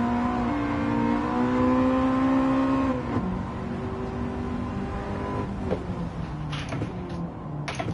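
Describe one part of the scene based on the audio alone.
A car engine roars at high revs, drops in pitch at a gear change, then drones more quietly.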